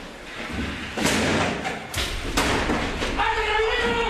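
Heavy boots thud and scuff up stairs.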